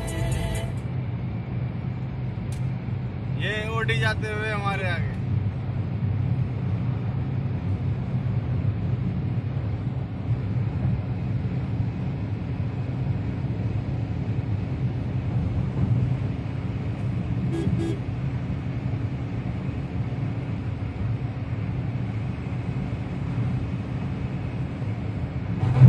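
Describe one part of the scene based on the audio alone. Tyres roll with a low rumble on smooth road.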